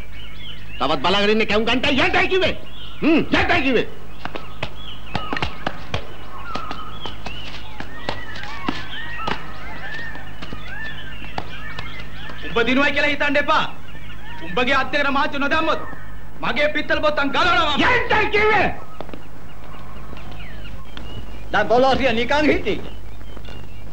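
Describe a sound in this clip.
A man speaks loudly and angrily, close by.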